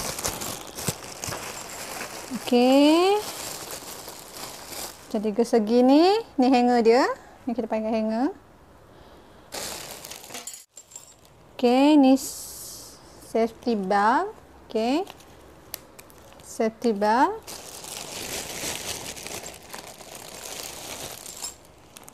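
A plastic bag crinkles and rustles.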